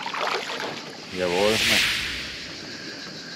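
Water splashes as a large fish thrashes at the surface.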